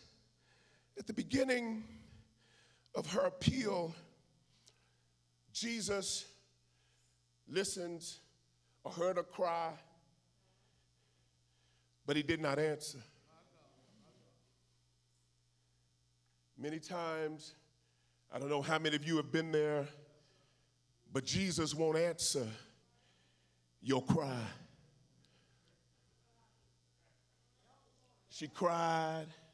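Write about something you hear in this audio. A man preaches with animation into a microphone, in short loud bursts with pauses, in a large reverberant hall.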